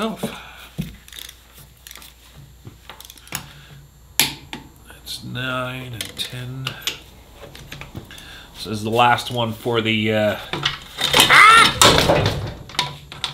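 A torque wrench clicks sharply as bolts are tightened.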